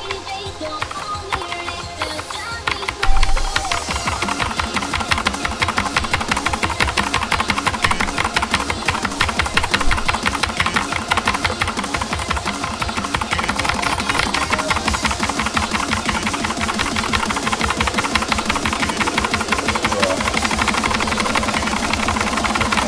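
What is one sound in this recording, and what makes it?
Fast, dense electronic music plays with a driving beat.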